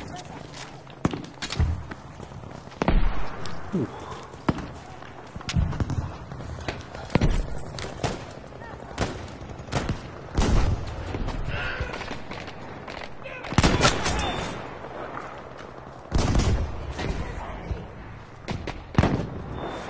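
Bolt-action rifle shots crack.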